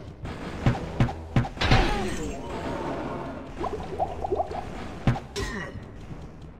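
Fireballs whoosh past and burst with sharp thuds.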